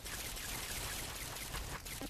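A web shooter fires with a sharp hiss.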